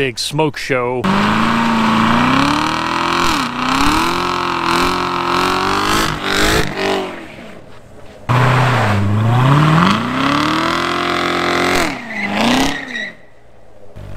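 A sports car engine revs loudly and roars up and down.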